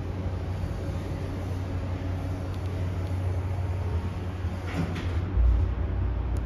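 Sliding metal elevator doors close.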